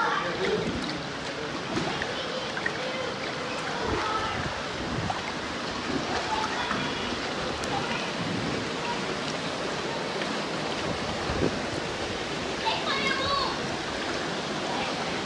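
Water splashes and laps as people wade and float through a river.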